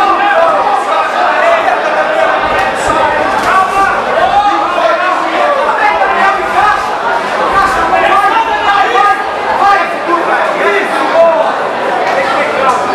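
A crowd shouts and cheers loudly nearby.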